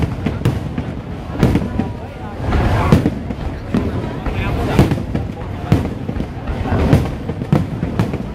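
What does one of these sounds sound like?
A crowd cheers and chatters nearby.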